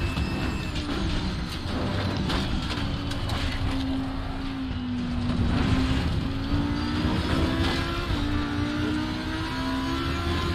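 Tyres rumble on the track.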